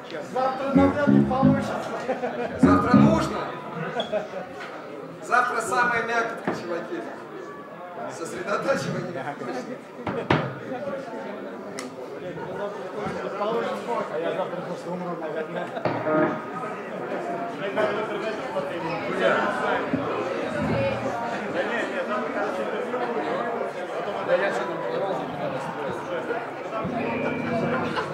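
Drums are played.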